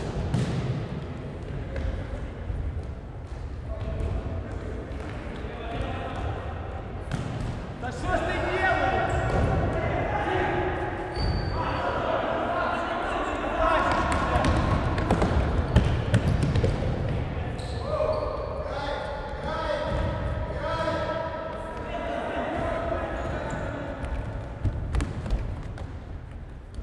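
A ball is kicked with dull thuds in an echoing hall.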